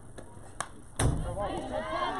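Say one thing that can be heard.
A softball bat cracks sharply against a ball.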